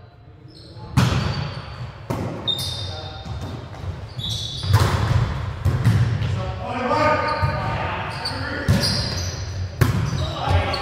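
A volleyball thuds off players' hands and arms.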